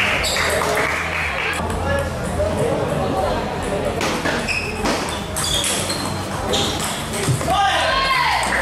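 A ping pong ball clicks back and forth on a table and paddles.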